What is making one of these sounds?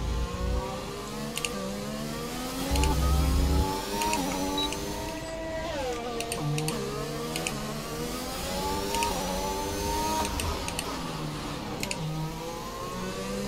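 A racing car engine revs up and down as gears shift.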